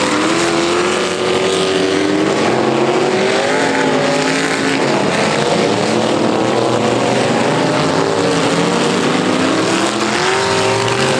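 Several car engines rev and roar loudly around a dirt track.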